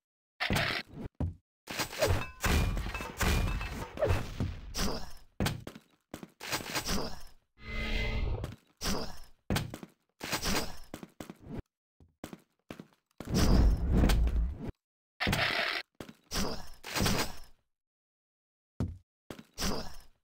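Item pickups chime briefly.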